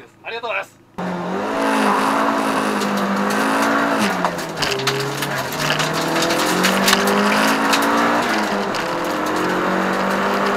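A rally car engine roars and revs hard as the car speeds off.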